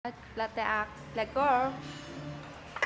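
A young woman speaks brightly and close up.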